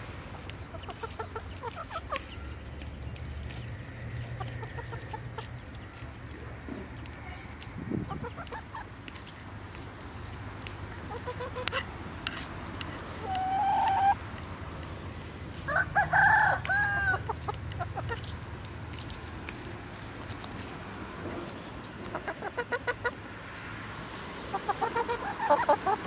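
Chickens peck at grain on dry ground.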